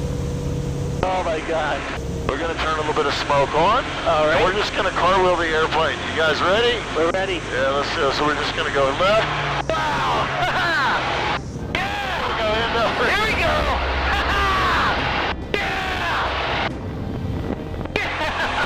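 A man speaks with animation through a headset radio.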